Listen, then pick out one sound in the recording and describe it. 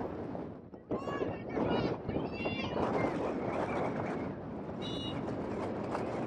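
Young women shout to each other from a distance outdoors.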